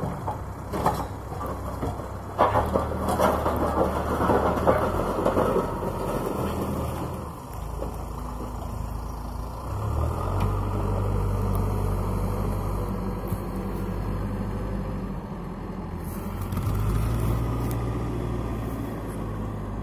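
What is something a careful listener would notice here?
A backhoe loader's diesel engine rumbles and revs nearby.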